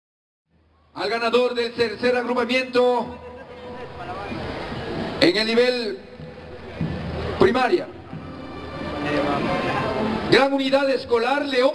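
A man speaks loudly through a loudspeaker outdoors, with echo.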